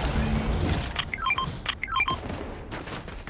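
A short chiming pickup tone plays twice.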